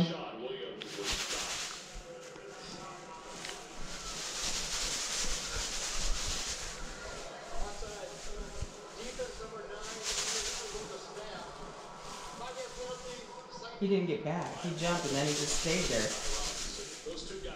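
A plastic pom-pom rustles and crinkles as it is shaken close by.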